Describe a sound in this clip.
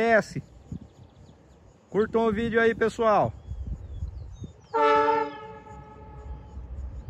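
A train horn blares loudly several times.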